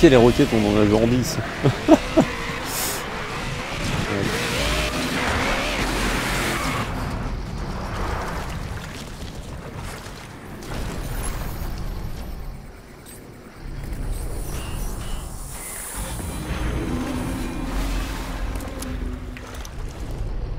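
A young man talks into a headset microphone with animation.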